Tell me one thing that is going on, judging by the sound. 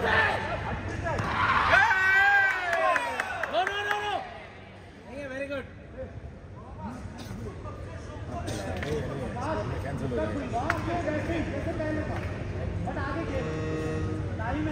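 People murmur and call out in a large echoing hall.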